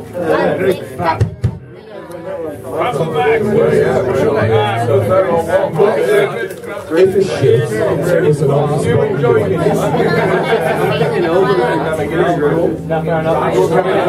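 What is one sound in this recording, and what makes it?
A crowd of young men and women talks and chatters loudly close by.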